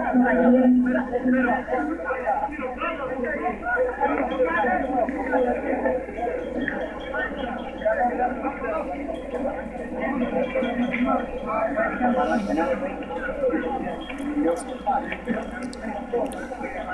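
A crowd of men and boys chatters outdoors all around.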